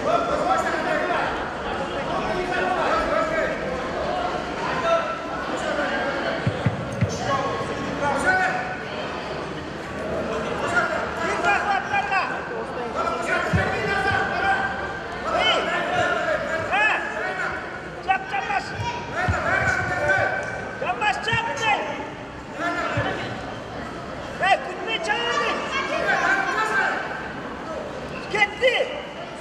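A crowd of young spectators shouts and cheers in a large echoing hall.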